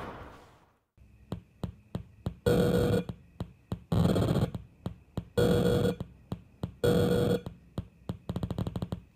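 An electronic drum machine plays a beat of kicks, snares and hi-hats.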